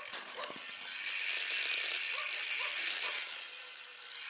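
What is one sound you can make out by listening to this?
A fishing reel clicks and whirs as its line is wound in.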